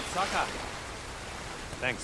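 Water swishes around a wading figure.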